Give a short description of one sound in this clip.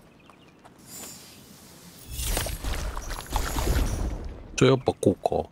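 A magical burst whooshes and crackles.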